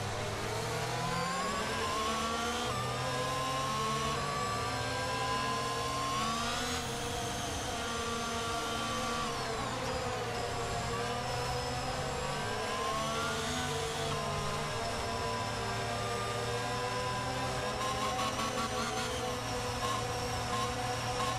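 A racing car engine whines loudly, rising and falling in pitch as it speeds up and slows down.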